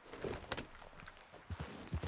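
A horse's hooves thud on the ground.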